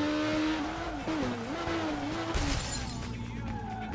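A motorcycle scrapes and crashes against a metal guardrail.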